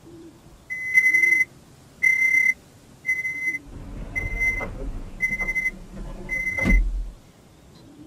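A train's door warning chime beeps repeatedly in short, even bursts.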